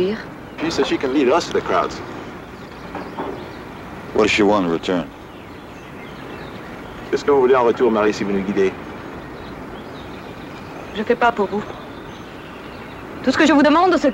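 A man speaks tensely in short bursts close by.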